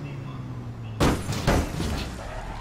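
A vehicle crashes loudly into something.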